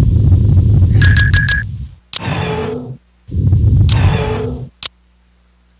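A spacecraft engine rumbles loudly in bursts.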